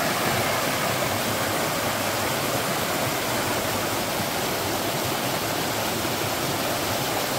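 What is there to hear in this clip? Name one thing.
A mountain stream rushes and splashes over rocks close by.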